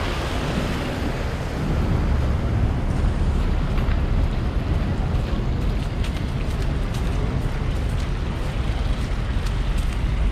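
Steady city traffic rumbles outdoors.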